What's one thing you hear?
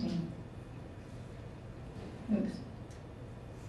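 A young woman speaks a few short words into a microphone, with pauses between them.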